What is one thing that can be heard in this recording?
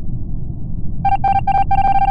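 An electronic game tone sounds steadily.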